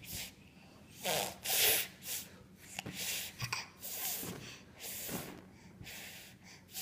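A toddler babbles softly close by.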